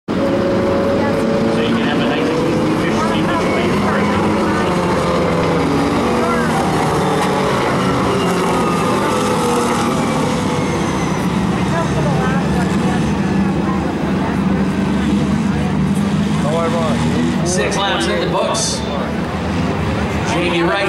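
Race car engines roar loudly as a pack of cars speeds past.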